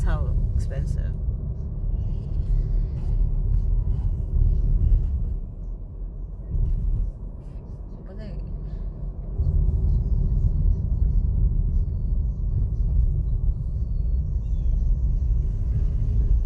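A car's engine and tyres rumble steadily from inside as the car drives along.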